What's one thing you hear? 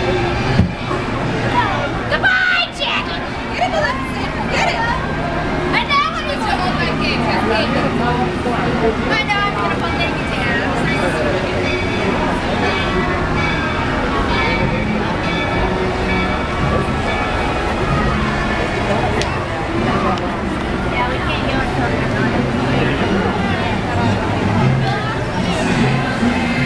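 Parade music plays loudly over loudspeakers.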